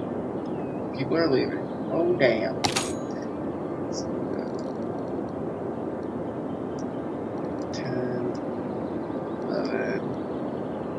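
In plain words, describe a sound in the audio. A man speaks in short bursts, close to a microphone.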